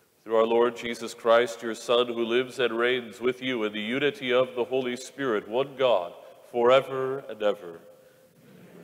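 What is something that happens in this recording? An elderly man chants a prayer in song through a microphone, echoing in a large hall.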